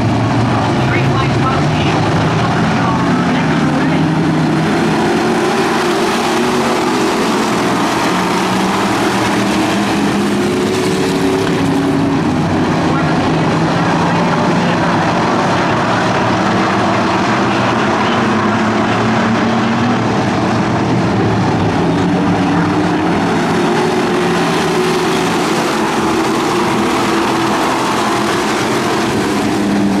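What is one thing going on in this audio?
Many race car engines roar loudly and steadily, rising and falling in pitch.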